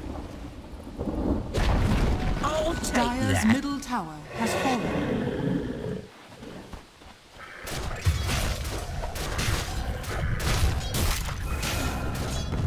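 Weapons clash and spells whoosh in a busy fight.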